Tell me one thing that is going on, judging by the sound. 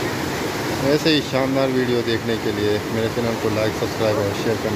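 Men talk close by outdoors, over the roar of a river.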